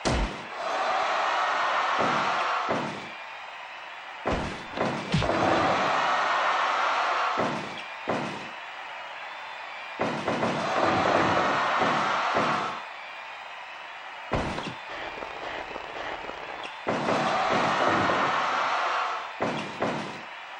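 A crowd cheers and roars in loud waves.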